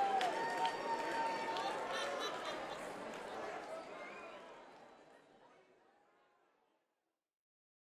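A large crowd cheers and applauds, then fades away.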